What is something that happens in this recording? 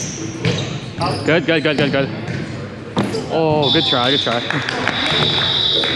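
Young men and women shout and call out to each other, echoing in a large gym.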